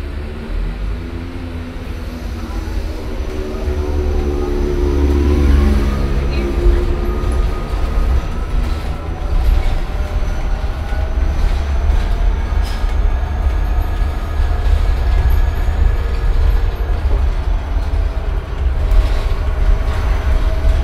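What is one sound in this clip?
Loose fittings rattle inside a moving bus.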